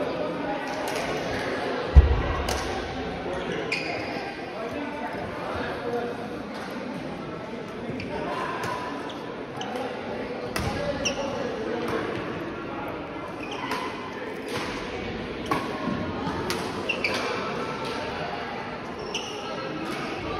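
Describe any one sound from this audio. Sneakers squeak on a court floor.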